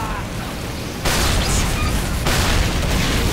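Rockets explode with heavy blasts.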